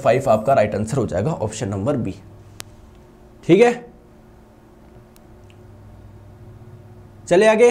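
A young man speaks in bursts, calmly explaining, close to a microphone.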